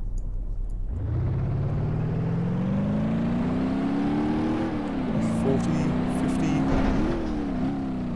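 A car engine accelerates steadily, its pitch climbing through the gears.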